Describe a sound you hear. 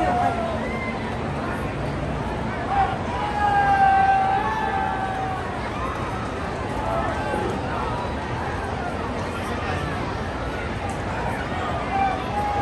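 Spectators nearby shout and call out.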